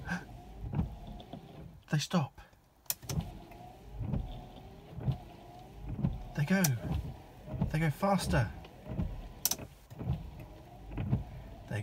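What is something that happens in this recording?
Windscreen wipers swish across the glass.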